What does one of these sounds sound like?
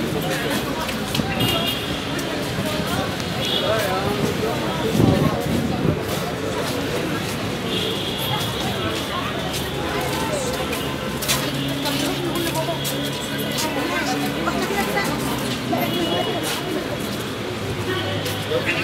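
Busy street noise hums steadily outdoors.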